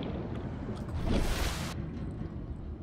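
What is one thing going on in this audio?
A hatch opens with a sudden whoosh.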